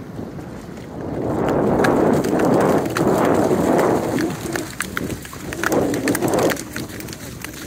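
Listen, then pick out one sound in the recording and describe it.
Dogs run splashing loudly through shallow water.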